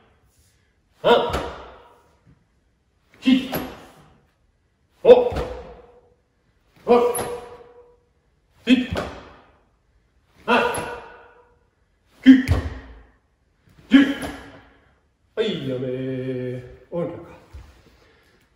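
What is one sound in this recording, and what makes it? An older man shouts short, sharp calls at a steady beat in an echoing hall.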